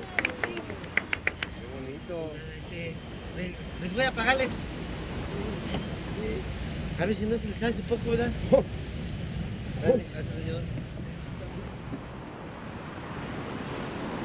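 A guitar is strummed.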